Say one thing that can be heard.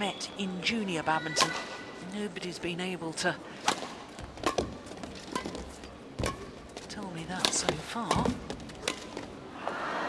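Rackets strike a shuttlecock in a quick rally, with sharp pops echoing in a large hall.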